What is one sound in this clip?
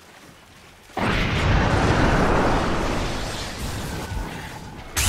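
A dark beam spell roars loudly.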